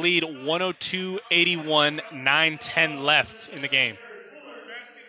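A man shouts loudly across an echoing gym.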